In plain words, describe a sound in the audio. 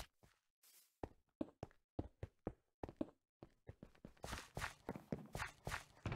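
Footsteps tap quickly and evenly on hard ground.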